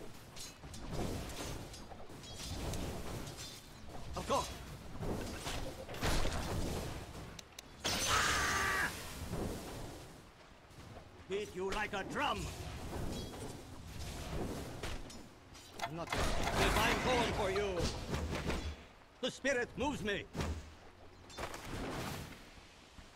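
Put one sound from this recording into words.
Game combat effects clash and burst as fighters battle.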